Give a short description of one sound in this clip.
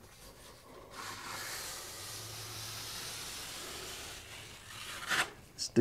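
A plastic straightedge scrapes across wet plaster on a wall.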